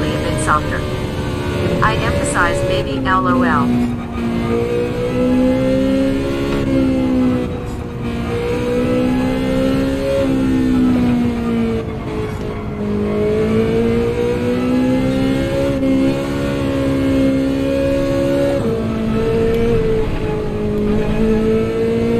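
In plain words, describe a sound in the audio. A racing car engine roars, its pitch rising and falling as it speeds up and shifts gears.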